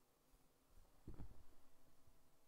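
A plastic pot is set down on a table with a dull thud.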